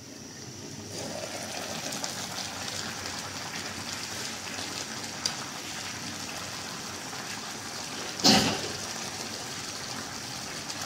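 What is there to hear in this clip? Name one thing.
Food bubbles and sizzles gently in a pot.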